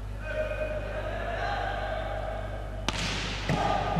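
A volleyball player serves with a sharp slap of the hand on the ball.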